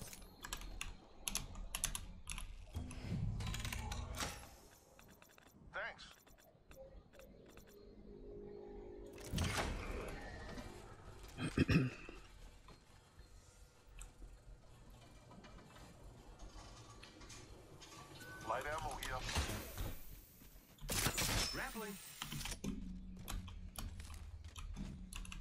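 Keys on a keyboard click rapidly.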